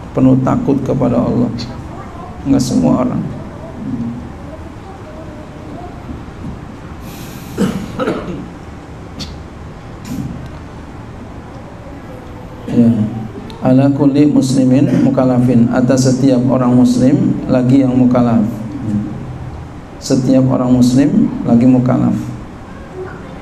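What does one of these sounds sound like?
A middle-aged man speaks into a microphone, with expression and in bursts with pauses.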